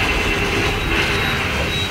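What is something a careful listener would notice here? Explosions boom in a video game.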